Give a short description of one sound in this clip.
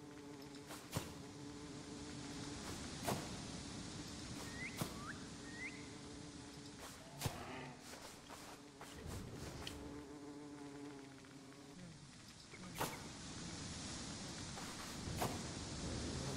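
A tool strikes the ground with sharp, separate thuds.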